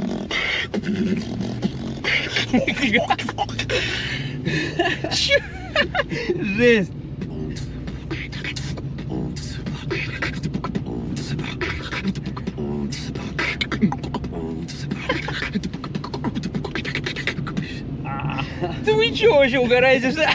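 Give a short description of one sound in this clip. A young man talks and laughs loudly close by.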